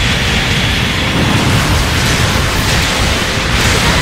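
A beam weapon fires with a sharp zap.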